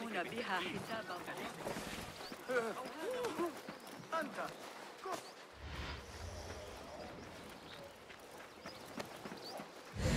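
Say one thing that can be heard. Footsteps run quickly over dirt.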